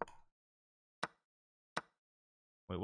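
Chess pieces click as they are moved.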